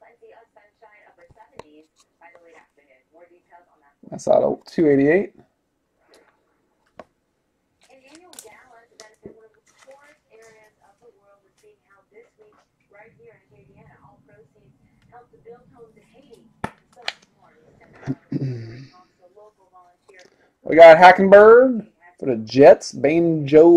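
Trading cards slide and tap against each other.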